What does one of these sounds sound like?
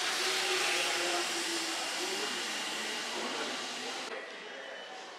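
A train rumbles and hums loudly beside a platform.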